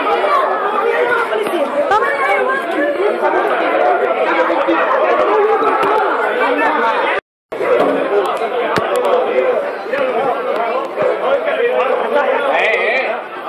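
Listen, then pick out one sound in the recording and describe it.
A crowd of men and women shouts and argues loudly close by.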